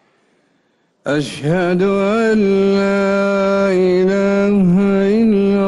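A man chants a long, drawn-out call through loudspeakers, echoing across an open space.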